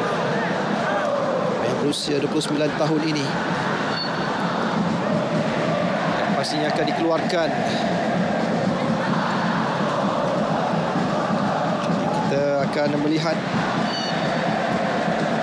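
A large stadium crowd cheers and chants steadily outdoors.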